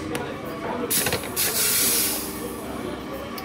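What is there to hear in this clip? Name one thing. A coffee grinder whirs briefly.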